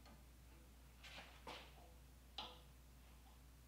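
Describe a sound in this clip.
Metal parts scrape and click against each other in a vise.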